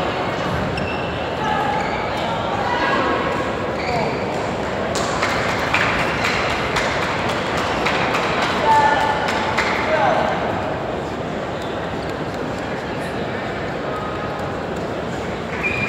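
A crowd of players murmurs and calls out.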